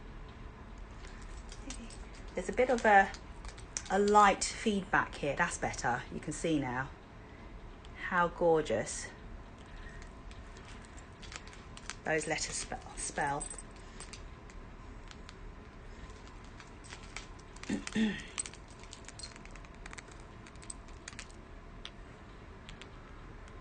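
Beads click and rattle softly in a hand.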